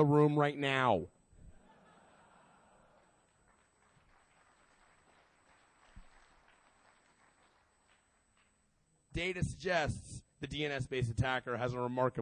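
A man speaks through a microphone to a large hall, pausing now and then.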